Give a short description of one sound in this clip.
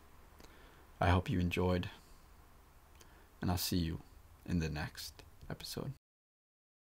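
A young man speaks calmly and closely into a microphone, in short phrases.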